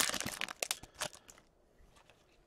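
Plastic wrapping crinkles and tears.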